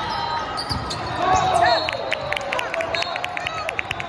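Young men shout and cheer.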